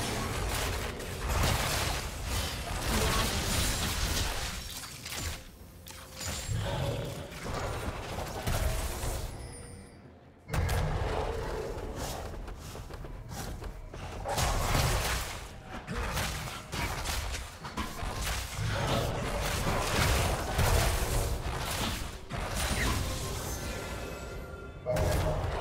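Fantasy game sound effects of spells and weapons clash and burst.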